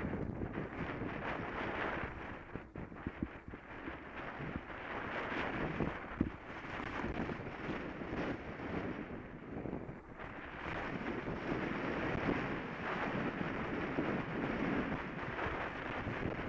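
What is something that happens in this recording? Tyres roll over a tarmac path.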